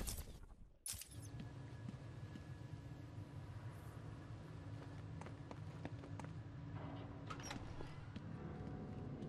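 Footsteps tap on a hard floor in a large echoing space.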